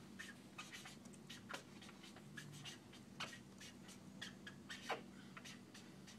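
A marker squeaks and taps on a paper flip chart.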